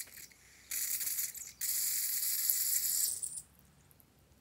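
A rubber squeeze toy hisses as it squirts out liquid.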